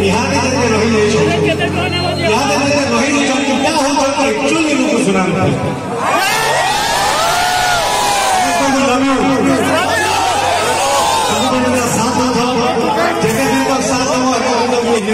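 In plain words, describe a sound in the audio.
An electric guitar plays along with a band.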